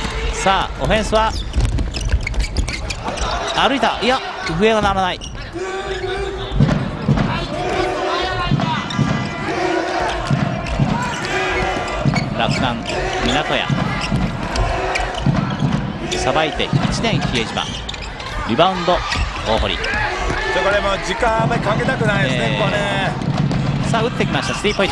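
A crowd in a large echoing arena cheers and chants.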